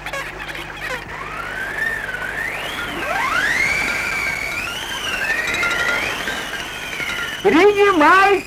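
Seagulls cry overhead.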